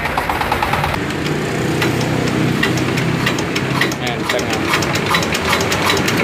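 A small engine runs with a steady clattering rattle.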